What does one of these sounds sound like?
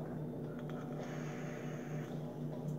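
A young woman draws a long, soft hissing breath from a vape.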